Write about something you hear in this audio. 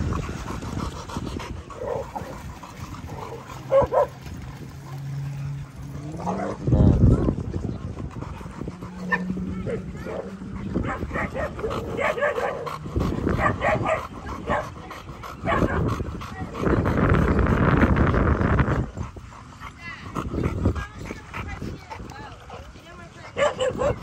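A dog pants heavily close by.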